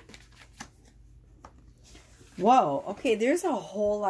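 A card is set down with a soft tap.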